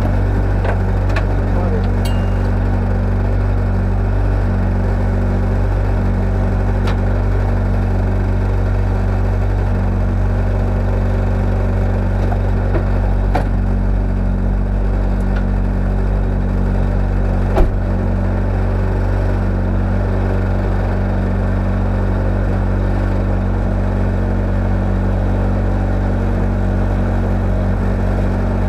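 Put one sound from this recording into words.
A car engine idles with a steady low rumble close by.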